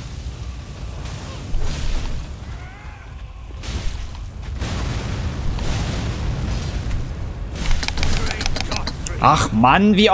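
Heavy blows and crashes boom.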